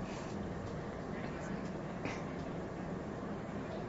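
A crowd of men and women murmurs and chatters nearby.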